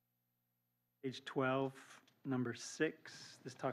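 A man speaks calmly into a microphone, heard through a loudspeaker system.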